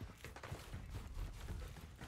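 Footsteps clang on metal stairs.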